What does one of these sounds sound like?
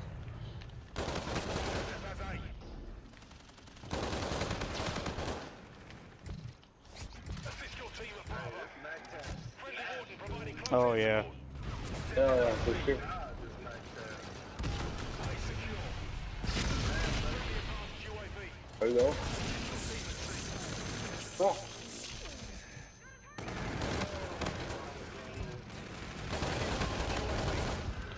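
Automatic gunfire rattles in bursts.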